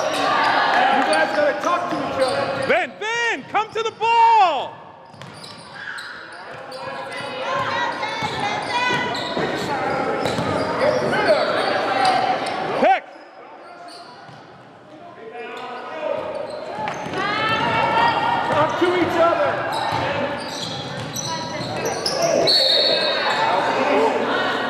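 Players and spectators shout and call out in an echoing gym.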